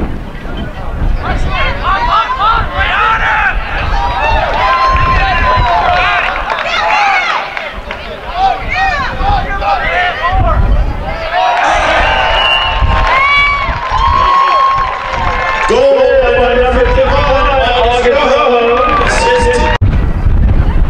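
Young men and spectators shout and cheer loudly outdoors.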